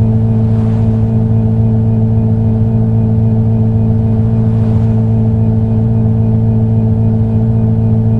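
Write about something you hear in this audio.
A car engine hums steadily at high speed.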